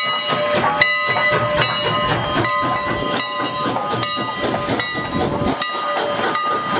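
A steam locomotive chuffs loudly up close.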